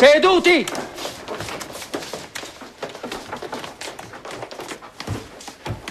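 Boys' footsteps shuffle and knock on a wooden floor.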